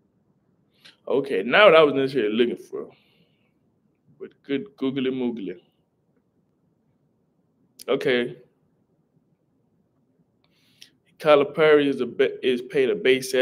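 A young man speaks calmly and close to a microphone, with pauses.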